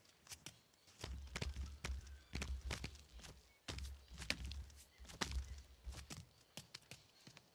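Soft thumps sound as a figure climbs up a wall.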